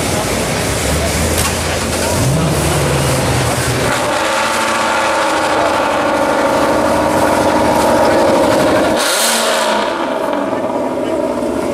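Adult men and women chat nearby outdoors.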